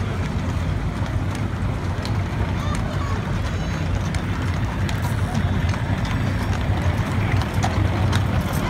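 Horses' hooves clop on pavement at a walk.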